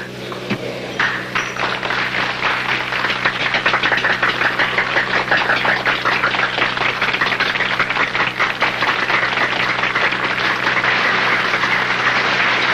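A crowd applauds steadily in an echoing hall.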